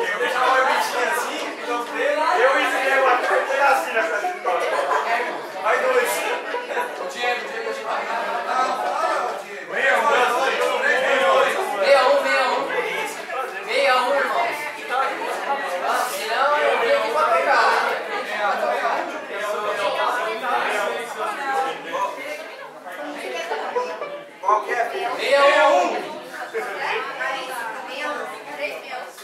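Several men and women talk at once nearby, in a room with some echo.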